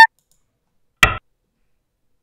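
A game stone clicks sharply onto a board.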